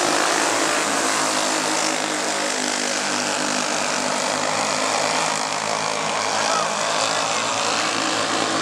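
Several small kart engines buzz and whine loudly.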